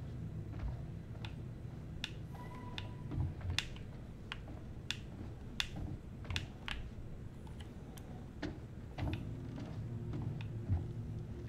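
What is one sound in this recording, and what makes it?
Footsteps tread slowly across a floor.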